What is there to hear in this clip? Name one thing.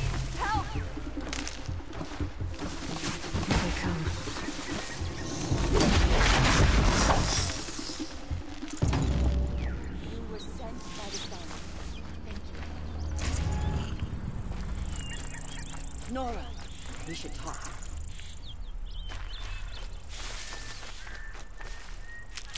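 Footsteps rustle through dense brush.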